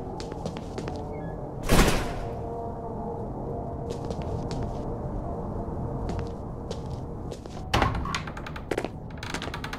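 A wooden door creaks open.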